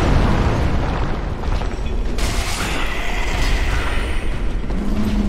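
Metal weapons clash and strike.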